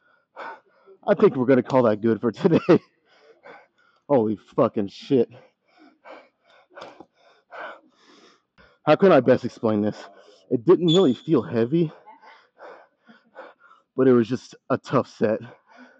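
A man talks calmly and close by, pausing now and then.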